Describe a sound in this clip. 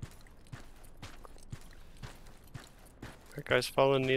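Footsteps thud steadily on dry ground.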